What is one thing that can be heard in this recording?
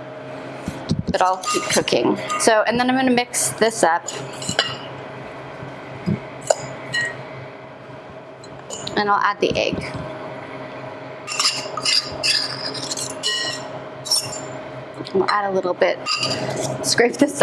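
A spoon clinks and stirs in a bowl.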